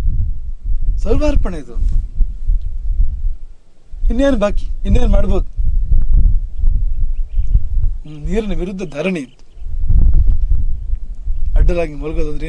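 A man speaks calmly into a microphone, in short phrases.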